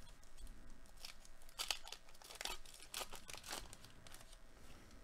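A foil wrapper crinkles and tears as a pack is opened.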